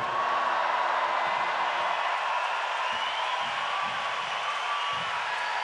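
Audience members clap their hands.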